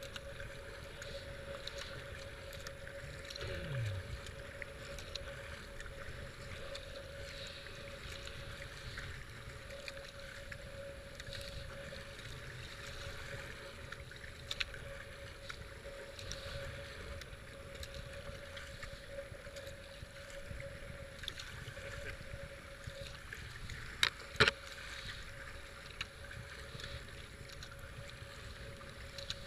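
A paddle splashes and dips into the water in steady strokes.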